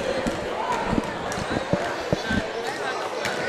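Basketballs bounce on a wooden court.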